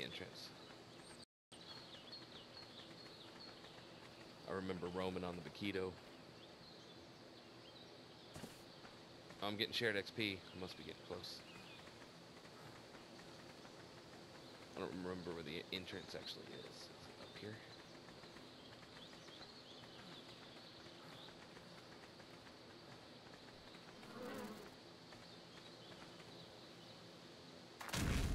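Footsteps run steadily over soft dirt.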